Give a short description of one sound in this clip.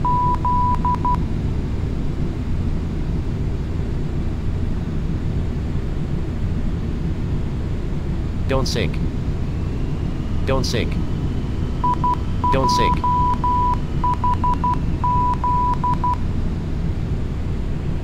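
Jet engines drone with a low, steady rumble.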